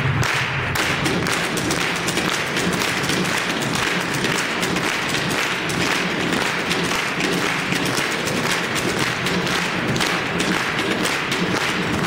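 Rhythmic music plays loudly through loudspeakers in a large hall.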